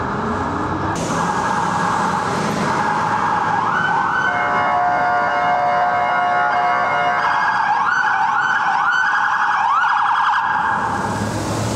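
A police siren wails and yelps loudly nearby.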